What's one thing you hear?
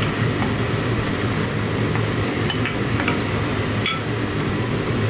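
Chopped vegetables tumble from a bowl into a pot.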